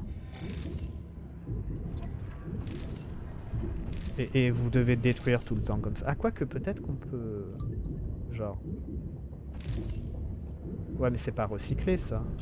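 A young man talks with animation, close to a microphone.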